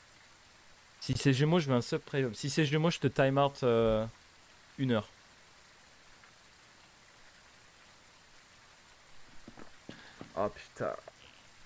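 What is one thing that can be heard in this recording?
A young man speaks animatedly into a close microphone.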